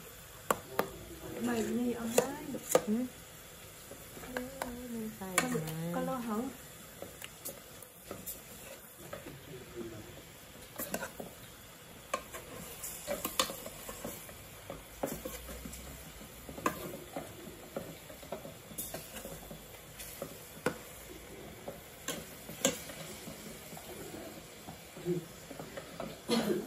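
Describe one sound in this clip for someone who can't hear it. A metal spatula scrapes and clanks against a steel pan.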